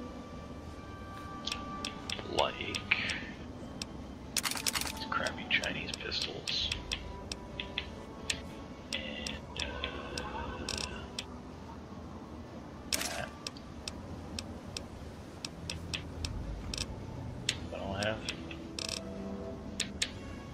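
Short menu clicks tick again and again as selections change.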